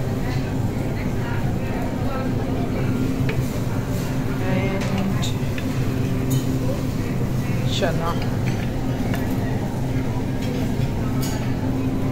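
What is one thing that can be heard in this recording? A serving spoon scrapes and clinks against a plate.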